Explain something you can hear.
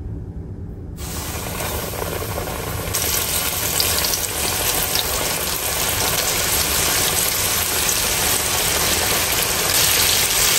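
Food sizzles and crackles loudly in hot oil.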